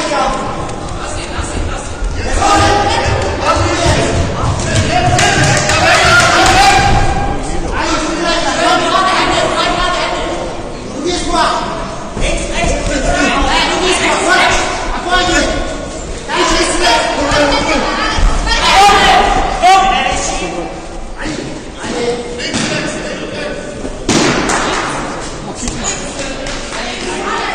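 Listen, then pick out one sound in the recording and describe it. Spectators shout and cheer loudly in an echoing hall.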